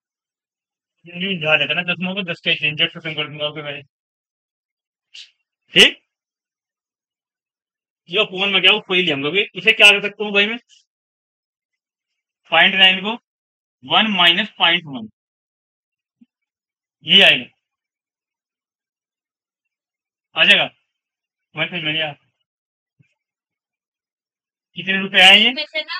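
A man speaks calmly in short phrases, as if explaining to a class.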